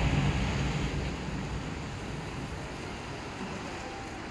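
Fountain jets of water hiss and splash outdoors, then die away.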